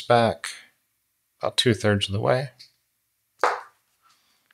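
Wire strippers snap shut on a wire.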